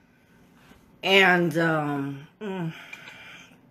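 A woman speaks close by, drawn out and expressive.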